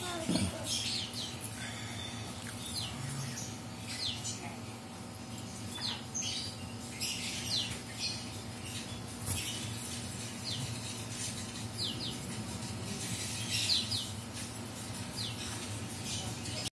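A small parrot chirps and screeches in short, high, shrill bursts close by.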